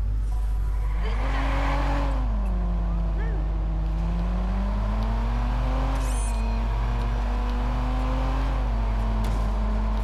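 A car engine revs up and roars as the car speeds away.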